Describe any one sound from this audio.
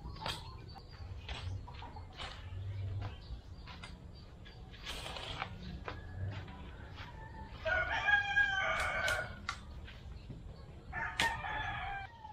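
A hoe chops and scrapes into soil.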